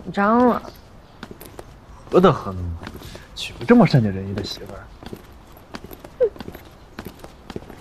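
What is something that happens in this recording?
Footsteps tap on stone stairs.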